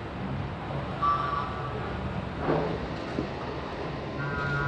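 A motor scooter engine putters past close by.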